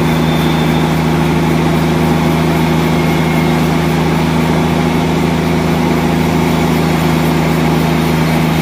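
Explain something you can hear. A band saw hums steadily as it cuts through a large log.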